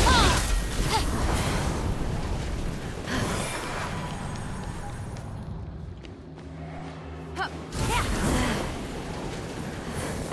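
Wings whoosh in quick beats.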